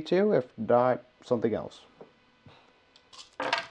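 A small plastic game piece taps down on a tabletop.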